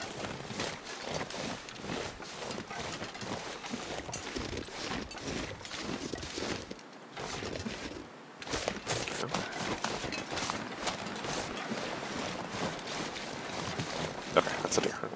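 A man talks calmly and casually into a close microphone.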